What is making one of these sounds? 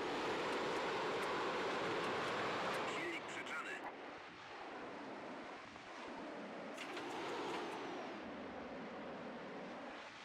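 A propeller plane's engine roars steadily.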